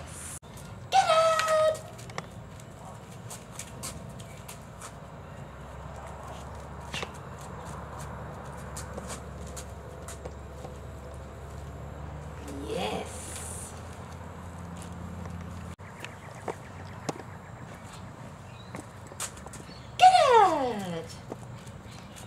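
An adult man gives cues and praise to a dog with animation.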